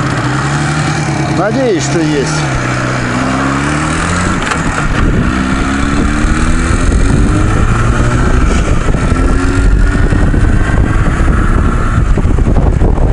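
A motorcycle engine revs and shifts gears as it speeds up.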